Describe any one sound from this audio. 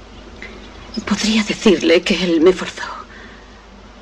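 A young woman speaks softly and emotionally.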